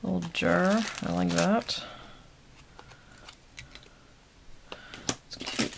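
A plastic bag crinkles as hands handle it.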